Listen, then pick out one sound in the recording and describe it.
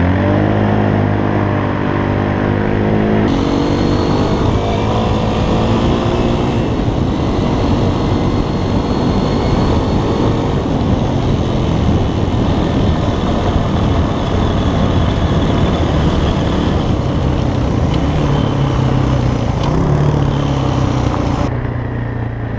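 A dirt bike engine roars close by as it rides fast.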